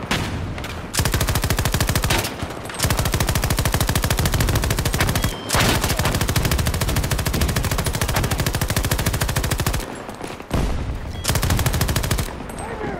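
A machine gun fires in long, rapid bursts.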